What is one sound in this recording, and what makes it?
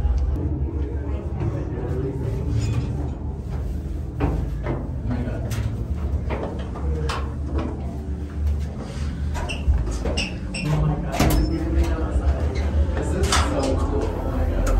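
Clothing rustles and scrapes against rock walls.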